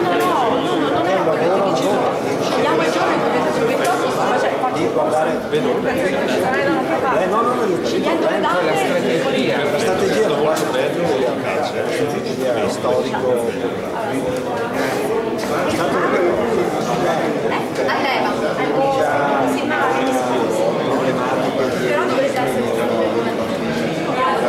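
A crowd of adults chatters all around, close by.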